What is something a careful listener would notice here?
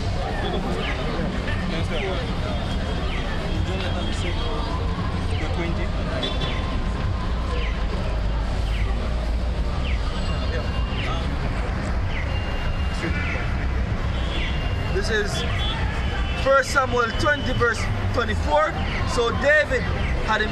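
Young men talk and call out close by, outdoors.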